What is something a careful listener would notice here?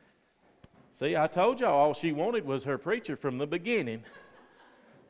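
A man speaks loudly and with drawn-out words in an echoing hall.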